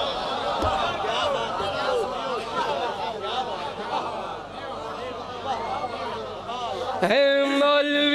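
A crowd of men chant together loudly.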